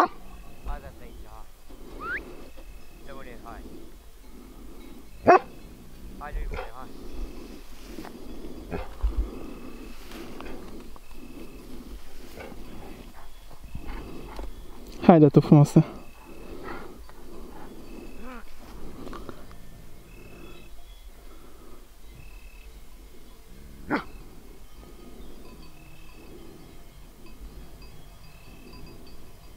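Dogs' paws rustle through tall dry grass.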